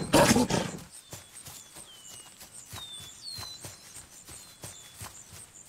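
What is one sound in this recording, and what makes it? Padded paws thud softly on grass in quick, steady footsteps.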